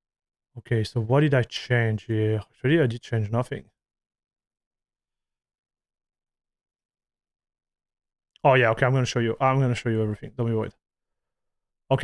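A man speaks calmly into a close microphone, pausing between phrases.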